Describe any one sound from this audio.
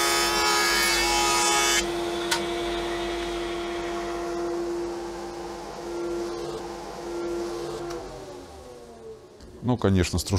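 A woodworking machine hums loudly, then winds down and falls quiet.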